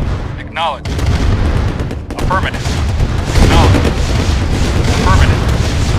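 Tank guns fire in rapid bursts.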